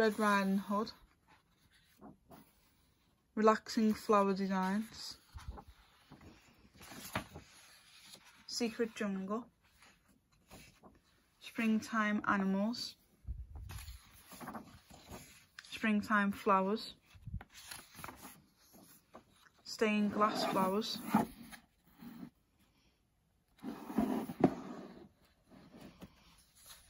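Paper pages rustle and flip as they are turned by hand.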